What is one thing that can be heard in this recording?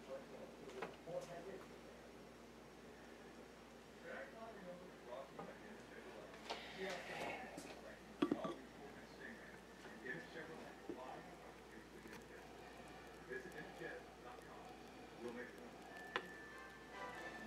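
Coffee bubbles and fizzes in a glass pot.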